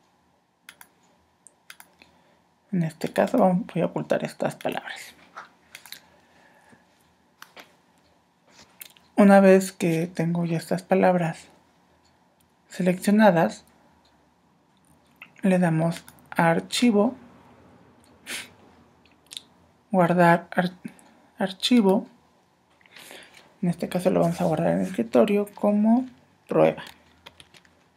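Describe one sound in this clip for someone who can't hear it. Mouse clicks tick now and then.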